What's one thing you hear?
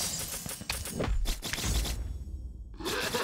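Game sound effects whoosh and chime.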